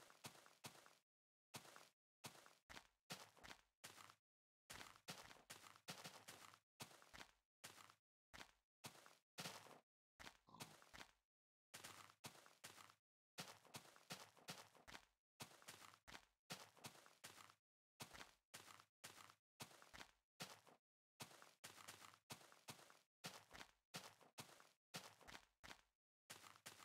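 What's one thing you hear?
Footsteps crunch steadily on grass.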